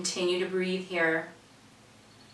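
An elderly woman speaks calmly and clearly, close by.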